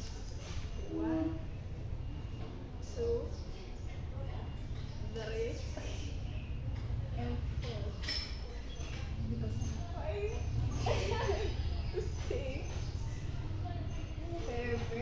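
Young women talk and laugh with animation close by.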